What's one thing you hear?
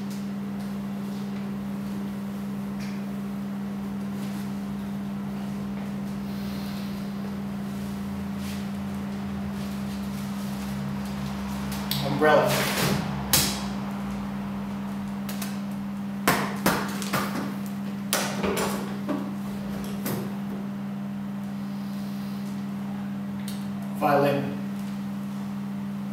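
A fan hums steadily throughout.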